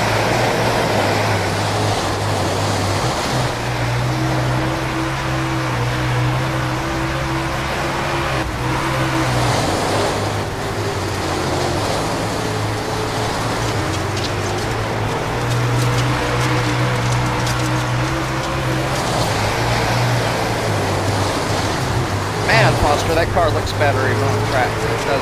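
Tyres skid and spray on loose dirt.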